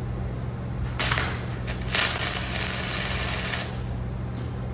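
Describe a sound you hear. An arc welder crackles and sizzles loudly.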